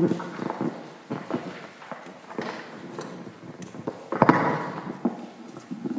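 A microphone knocks and thumps as it is handled.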